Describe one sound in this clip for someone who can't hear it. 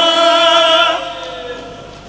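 A man chants loudly into a microphone, heard through loudspeakers in an echoing hall.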